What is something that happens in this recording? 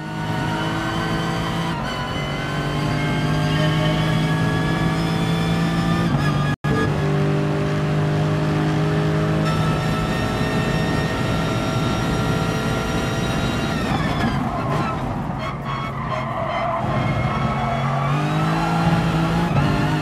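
A racing car engine roars at high revs, climbing in pitch and dropping with each gear change.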